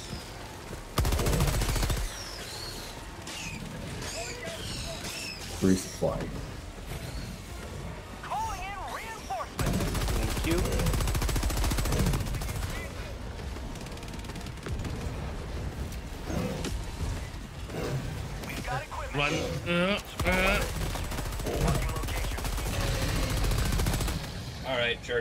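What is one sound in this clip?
Rapid gunfire blasts in loud bursts.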